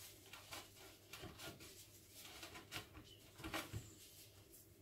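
A hand tool taps and knocks against a wooden board.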